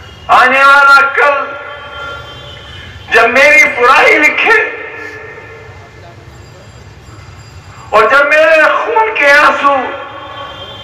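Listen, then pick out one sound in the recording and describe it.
A man speaks forcefully into a microphone over loudspeakers in a large echoing hall, in short loud bursts.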